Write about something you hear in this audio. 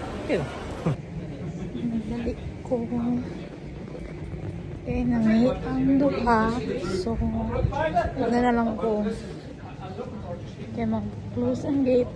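A young woman speaks casually and close by.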